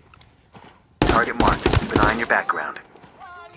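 Rapid gunshots ring out in a quick burst.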